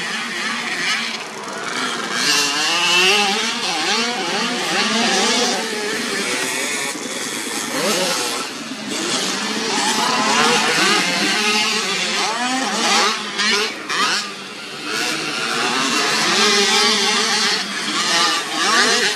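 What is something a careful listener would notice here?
Motorcycle engines rev loudly and whine as the bikes race over dirt.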